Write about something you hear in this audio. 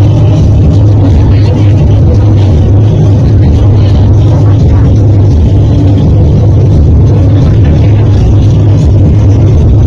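Loud music with a heavy, booming bass plays through loudspeakers outdoors.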